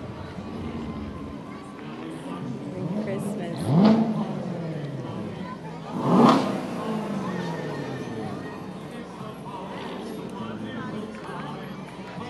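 Sports car engines rev loudly as cars drive past.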